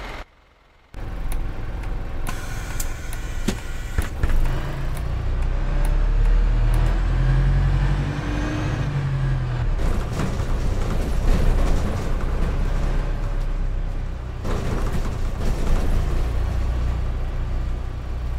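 A bus engine rumbles low as the bus drives along.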